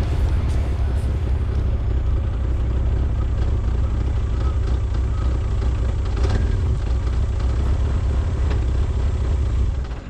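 Tyres crunch and rattle over a rough dirt track.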